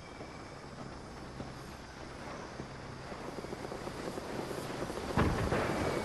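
A vehicle engine hums steadily at low pitch.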